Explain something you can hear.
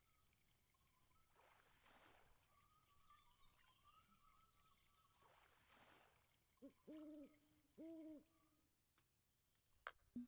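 A fishing reel winds with a soft whir.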